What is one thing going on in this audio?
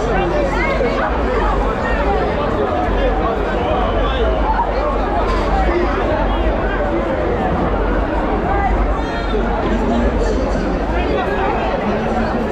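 A dense crowd of young people chatters loudly all around, close by.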